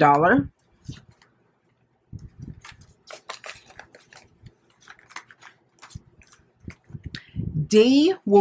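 A plastic binder sleeve crinkles.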